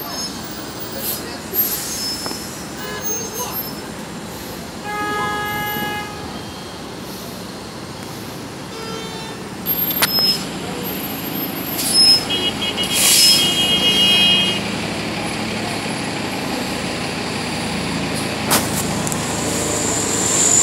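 A city bus engine idles and rumbles close by.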